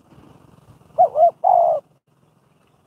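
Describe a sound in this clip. A bird calls twice in short whistled notes.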